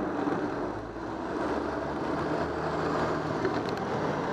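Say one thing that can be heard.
A truck engine rumbles low as the truck crosses ahead.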